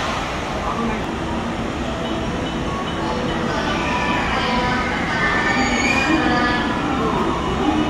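An electric train rolls slowly into a station with a low rumble.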